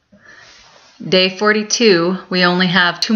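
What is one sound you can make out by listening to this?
A woman speaks calmly and close up, as into a webcam microphone.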